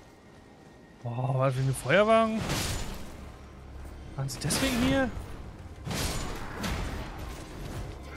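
Swords clash and strike with heavy thuds.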